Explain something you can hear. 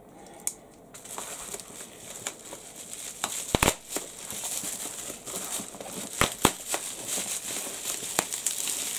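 Bubble wrap crinkles and rustles as a hand handles it.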